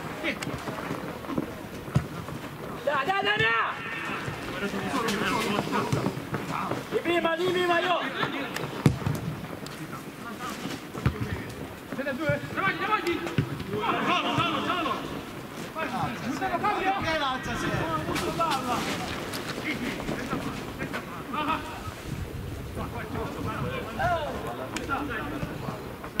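A football thuds as players kick it outdoors.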